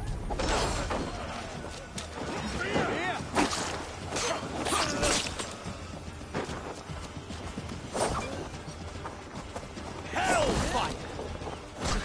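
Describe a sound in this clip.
Footsteps run over rough ground.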